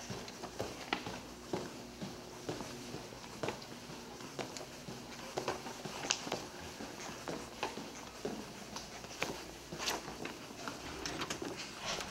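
Footsteps tap along a hard floor.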